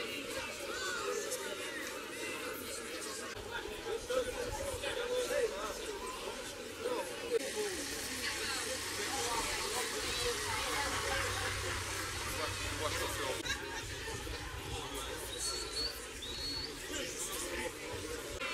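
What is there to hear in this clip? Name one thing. A crowd of men and women chatters outdoors all around.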